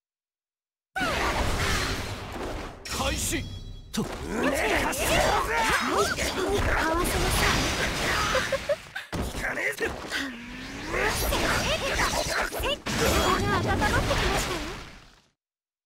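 Blades swish and clash in quick strikes.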